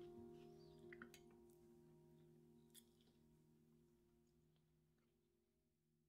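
Cutlery clinks against dishes.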